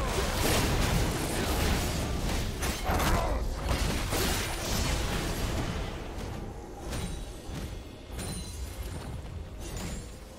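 Spell effects crackle and boom in a fierce game battle.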